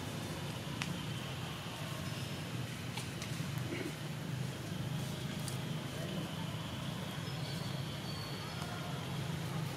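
Leaves rustle as a monkey scrambles along a branch.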